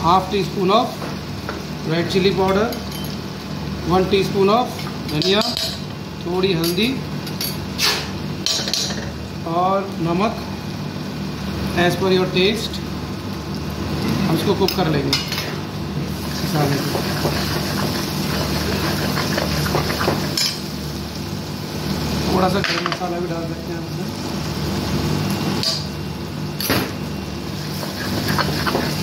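Oil sizzles in a hot pan.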